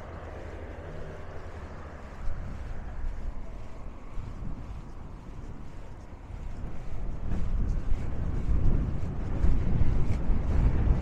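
Waves wash against a sea wall below.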